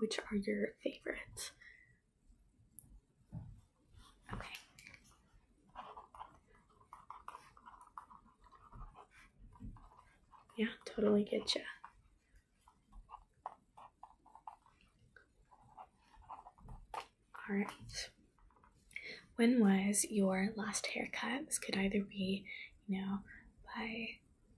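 A young woman speaks calmly and close by, in pauses.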